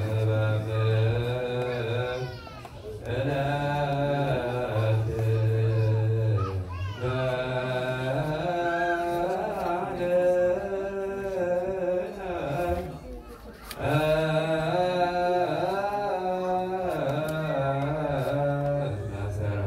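A large congregation of men and women chants together in a slow, droning hymn, in a large echoing hall.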